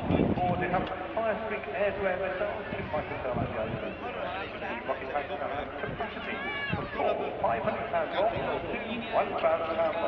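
Water birds call and chirp from the water.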